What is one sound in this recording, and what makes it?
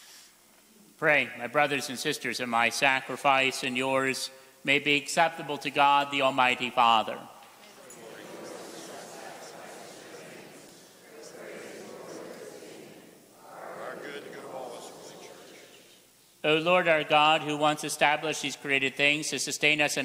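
A man chants in a sung voice through a microphone, echoing in a large hall.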